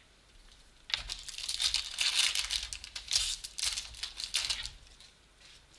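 Plastic wrapping crinkles and tears.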